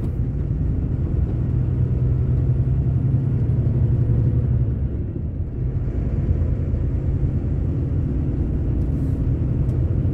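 Tyres roll on asphalt with a low rumble.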